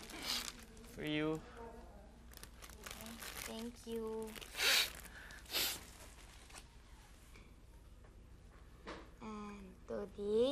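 A young woman speaks softly and cheerfully close by.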